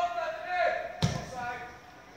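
A football is struck hard with a thud outdoors.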